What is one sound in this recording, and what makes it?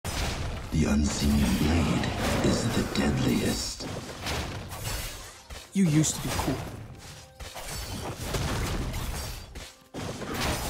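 Game fighting sound effects whoosh and clash.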